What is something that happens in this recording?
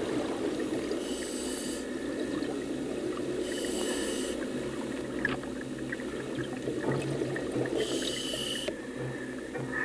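A diver's breathing gear hisses and bubbles.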